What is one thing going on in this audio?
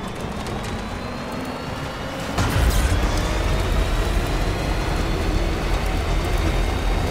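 A truck engine rumbles steadily as it drives along a road.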